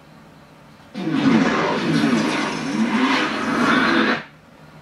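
A deep rushing sound swells and roars, then cuts off.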